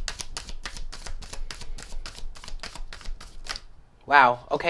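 Playing cards riffle and flick rapidly as they are shuffled.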